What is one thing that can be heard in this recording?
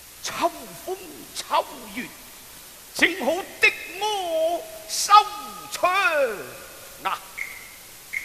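A man sings in a high, sliding voice, close by.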